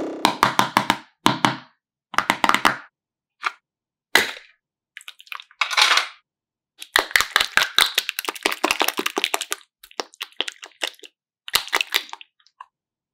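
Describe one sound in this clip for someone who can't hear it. Soft slime squelches and crackles as hands squeeze and press it.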